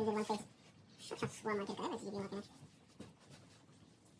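A cloth rubs over a smooth surface.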